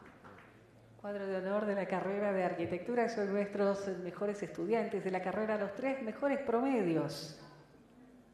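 A man reads out names over a loudspeaker in a large echoing hall.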